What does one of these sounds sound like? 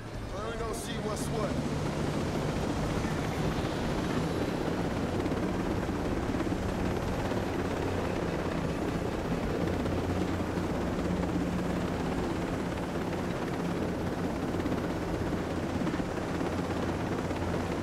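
A helicopter's rotor thumps as it lifts off and flies.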